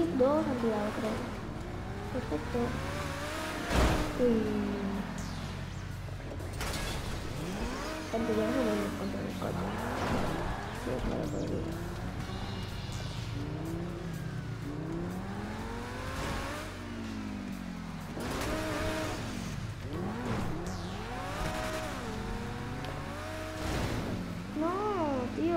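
A sports car's engine revs up and down in a video game.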